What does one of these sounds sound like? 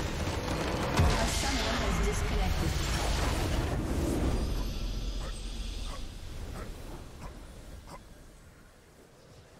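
A game's base crumbles with a loud, rumbling explosion that slowly fades.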